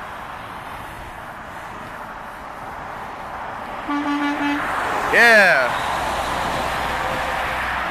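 A large truck approaches and roars past close by.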